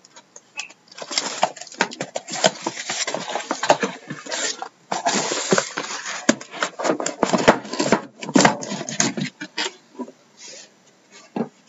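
Cardboard flaps rustle and scrape.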